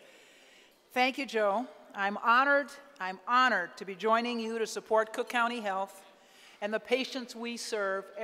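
An older woman speaks calmly and clearly into a microphone.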